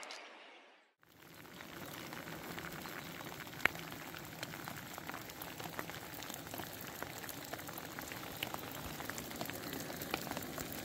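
Rain patters steadily on leaves and a rain jacket outdoors.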